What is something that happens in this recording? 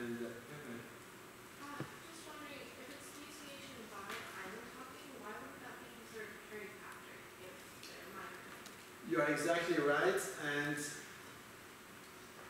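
A man lectures calmly through a microphone.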